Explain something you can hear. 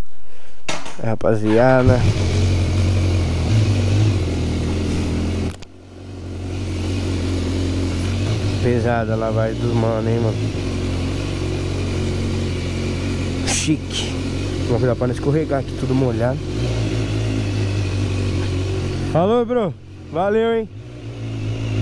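A motorcycle engine revs up and down in short bursts.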